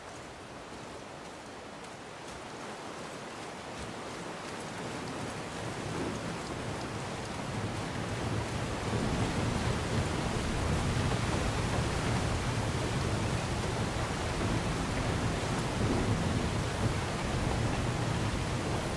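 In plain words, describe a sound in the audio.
A waterfall roars steadily, growing louder as it draws near.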